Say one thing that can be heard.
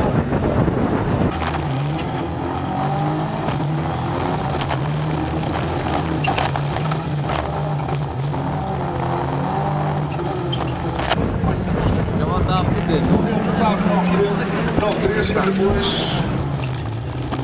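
A racing car engine roars loudly up close, revving and shifting gears.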